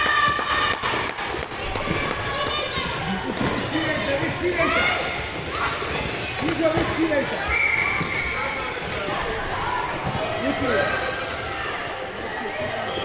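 Children shout and call out to each other in a large echoing hall.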